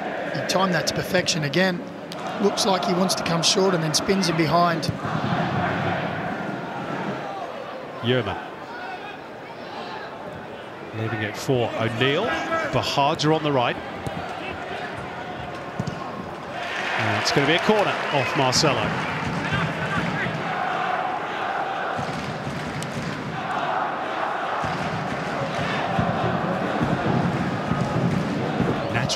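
A stadium crowd murmurs in a large open space.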